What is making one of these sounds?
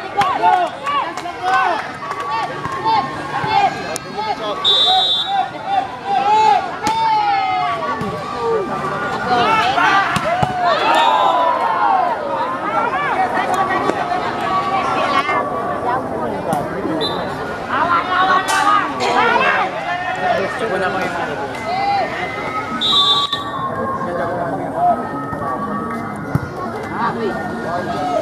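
A crowd of spectators chatters and shouts loudly outdoors.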